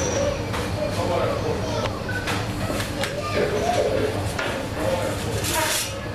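A metal pizza peel scrapes across a stone oven floor.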